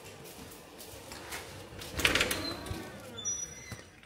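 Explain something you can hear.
A glass door swings open.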